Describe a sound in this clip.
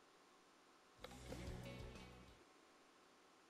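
A short electronic menu chime sounds.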